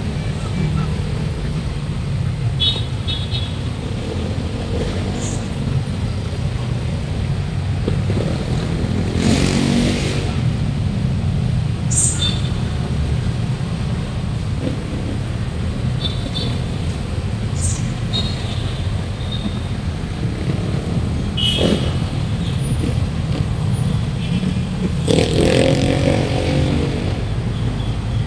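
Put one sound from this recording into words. City traffic rumbles steadily in the background.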